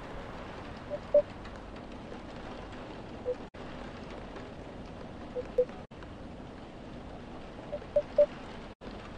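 Short, soft electronic blips sound in quick pairs and triples.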